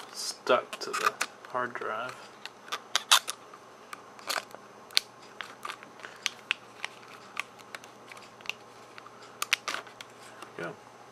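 Small metal parts click and tap as fingers handle a hard drive.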